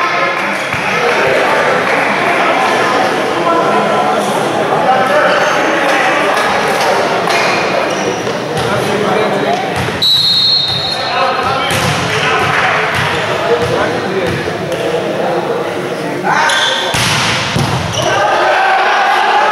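A volleyball thumps loudly as it is struck in a large echoing hall.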